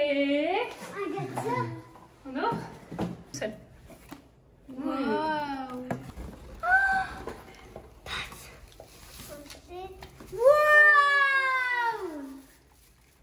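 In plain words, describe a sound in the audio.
Young children squeal and chatter excitedly close by.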